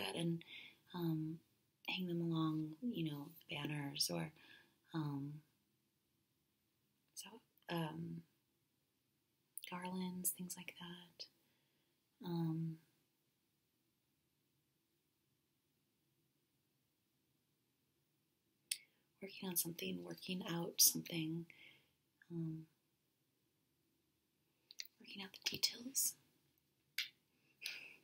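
A young woman speaks softly and calmly close to a microphone.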